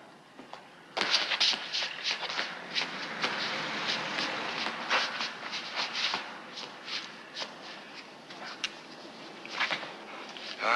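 A scuffle breaks out with rustling and thumping.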